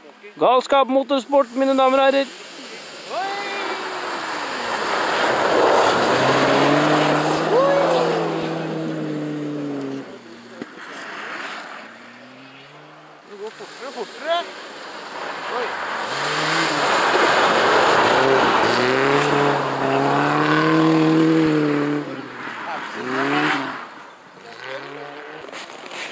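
Rally car engines roar and rev loudly as they approach and speed past, one after another.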